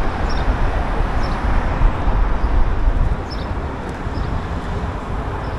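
Cars drive by on a nearby road.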